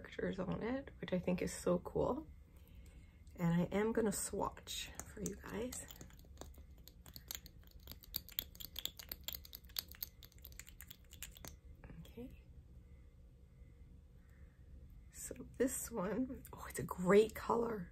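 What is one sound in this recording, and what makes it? A middle-aged woman talks with animation, close to a microphone.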